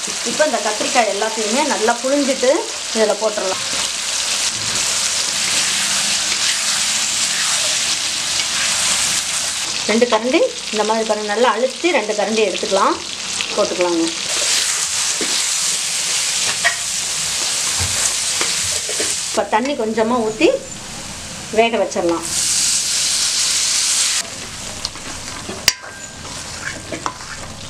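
Food sizzles and hisses in a hot pan.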